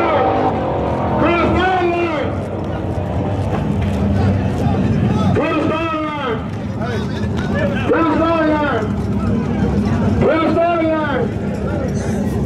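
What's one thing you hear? Engines rev up and down in short bursts nearby.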